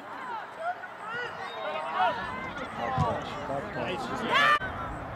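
Young players shout and call to each other across an open field outdoors.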